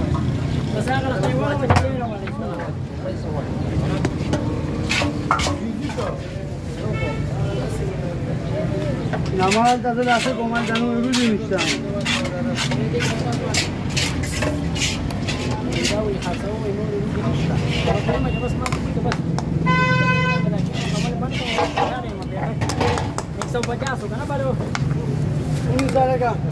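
A metal ladle scrapes and clanks against a metal pot.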